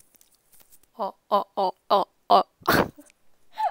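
A young woman laughs brightly close by.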